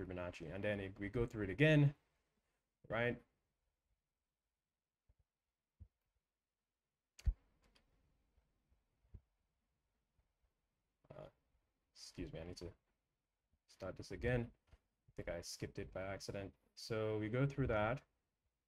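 A young man speaks with animation close to a microphone, with pauses.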